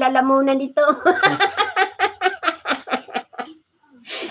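An elderly woman laughs loudly.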